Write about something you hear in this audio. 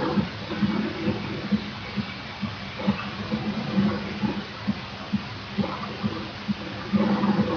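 Footsteps patter quickly on a wooden floor.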